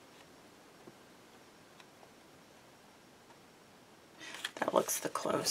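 Paper strips rustle and slide softly.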